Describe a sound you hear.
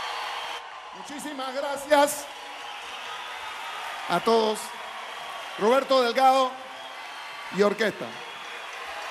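A man speaks into a microphone over loudspeakers in a large open space.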